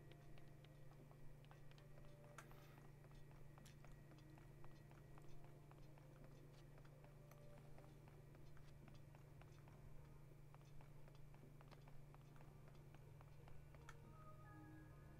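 Footsteps patter quickly across a hard floor.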